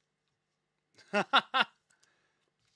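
A young man laughs loudly and close to a microphone.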